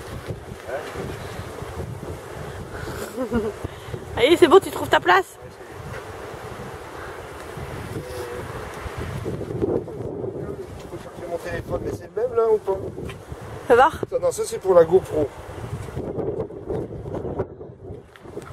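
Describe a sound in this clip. An elderly man talks casually nearby.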